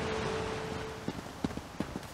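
Footsteps run along a dirt path.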